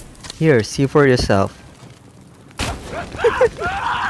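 A flaming arrow whooshes and bursts into fire.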